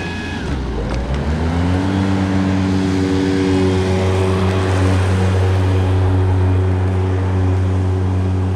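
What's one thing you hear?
A riding lawn mower engine roars louder as it draws near, then drones steadily.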